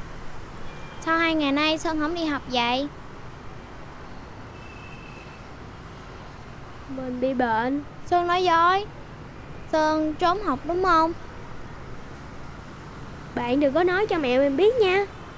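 A young boy speaks close by in reply.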